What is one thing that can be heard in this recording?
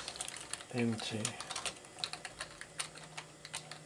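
Computer keys click as someone types.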